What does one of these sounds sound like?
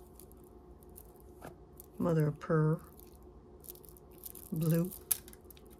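Beads and shells clink and rattle as they are handled.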